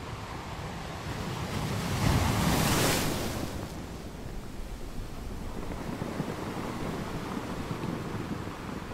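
Ocean waves crash and roar against rocks.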